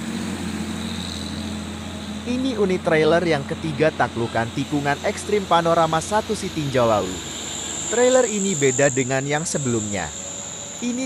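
A heavy truck engine rumbles as it climbs slowly.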